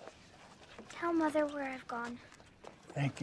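A girl speaks softly and brightly, close by.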